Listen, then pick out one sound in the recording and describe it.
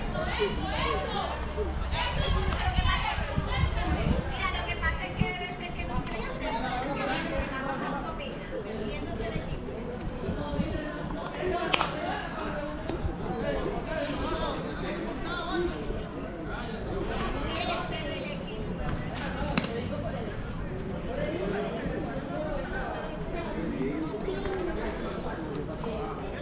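Several men talk and call out outdoors at a distance.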